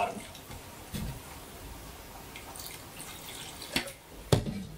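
Water pours into a glass jug.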